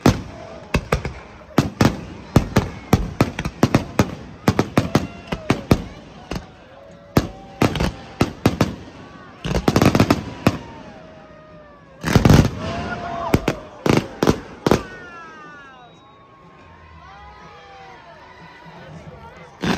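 Firework rockets whistle as they rise.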